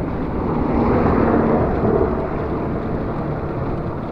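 A car passes by on the road.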